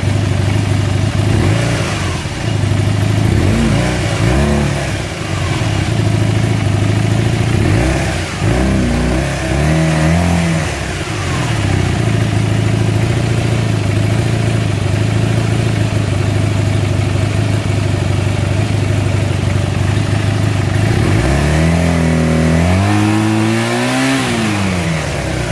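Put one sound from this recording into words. An engine idles with a steady low rumble close by.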